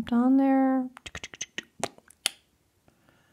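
A small plastic stamper clicks and taps as it is handled.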